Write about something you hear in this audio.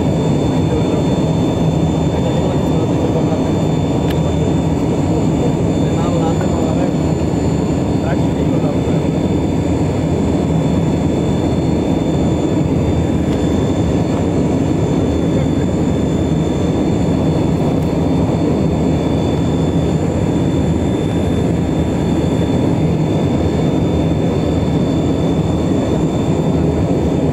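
An aircraft engine drones steadily inside a cabin.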